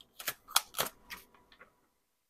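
Paper rustles briefly as it is handled.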